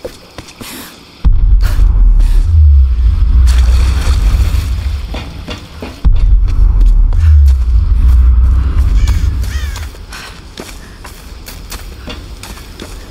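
Footsteps crunch on the forest floor.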